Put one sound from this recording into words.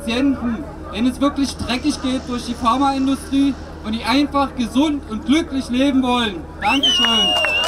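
A man speaks loudly with animation through a microphone and loudspeaker, outdoors.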